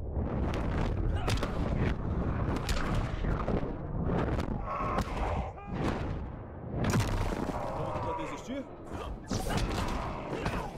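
Heavy punches and impacts thud and crack in quick succession.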